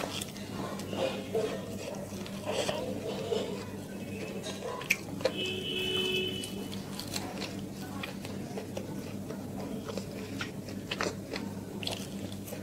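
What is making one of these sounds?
A woman chews and smacks her lips close to the microphone.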